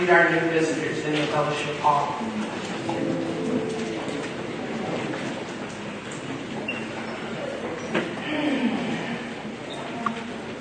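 A crowd of people sings and calls out together in a large echoing hall.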